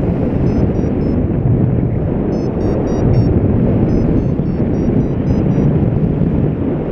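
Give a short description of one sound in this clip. Strong wind roars steadily past, as if in flight outdoors.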